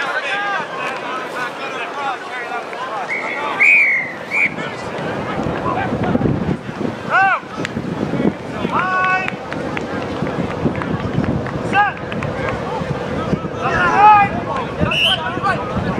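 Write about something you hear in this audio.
A crowd of spectators shouts and cheers outdoors at a distance.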